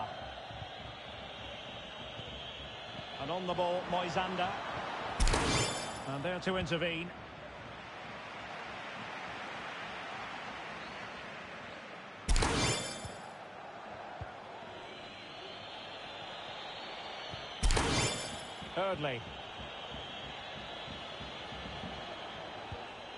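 A stadium crowd murmurs and roars.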